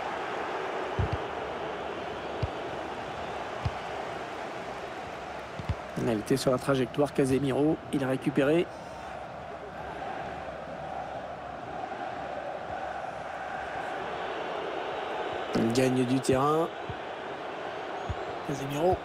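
A football is kicked with dull thumps.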